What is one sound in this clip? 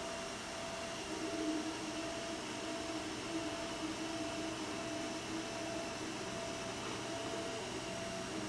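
A small machine's motors hum and whir softly as its print head moves back and forth.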